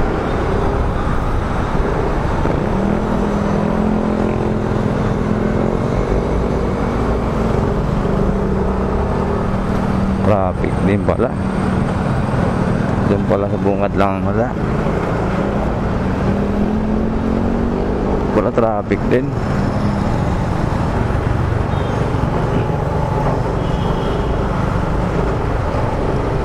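A motorcycle engine idles and hums steadily up close.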